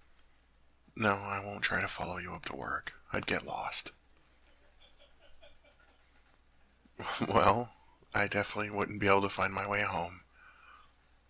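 A young man speaks softly and intimately, close to a microphone.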